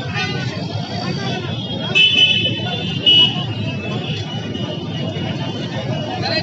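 Motorbike engines hum as they pass by.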